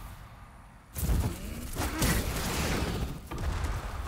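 A fiery blast roars and crackles.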